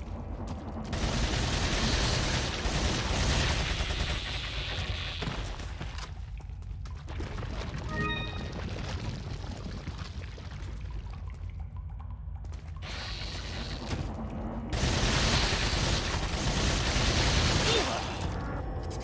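Gunshots boom in quick bursts.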